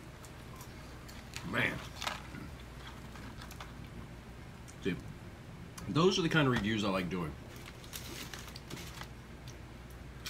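A cardboard box rustles as a man pulls food from it.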